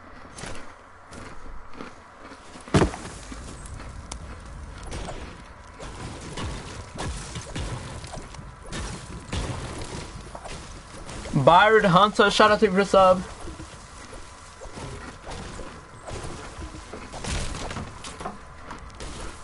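A pickaxe strikes repeatedly with dull knocks.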